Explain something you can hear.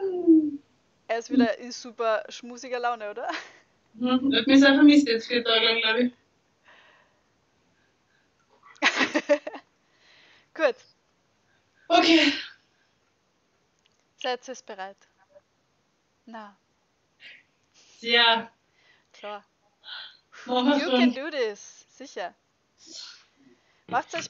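A young woman talks and laughs over an online call.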